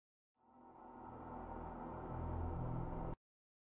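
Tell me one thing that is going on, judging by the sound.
A huge explosion rumbles low and deep.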